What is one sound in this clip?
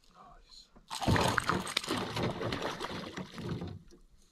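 A fish thrashes and splashes loudly at the water's surface.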